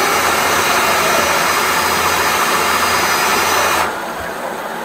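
A motorised drain-cleaning cable whirs loudly and stops suddenly.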